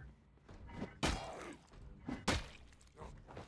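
A weapon strikes a body with heavy thuds.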